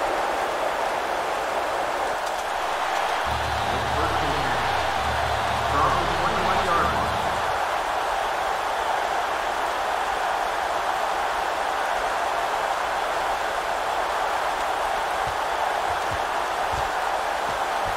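A stadium crowd murmurs and roars steadily.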